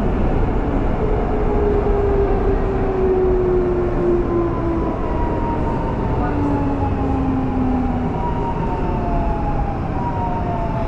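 A train's motors whine with slowly gliding tones.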